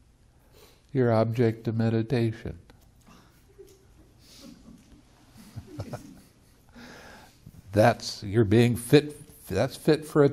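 An elderly man speaks with animation, close to a microphone.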